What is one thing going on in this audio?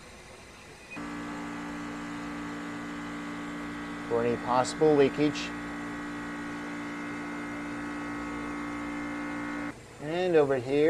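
An electronic leak detector hums with a steady tone.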